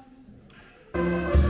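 A brass band starts playing loudly.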